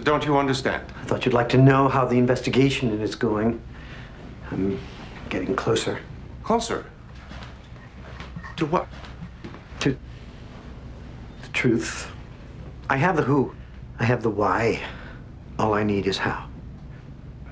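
A man speaks firmly at close range.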